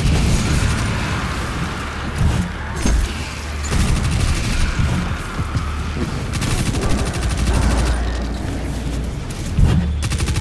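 Energy blasts explode with loud booms.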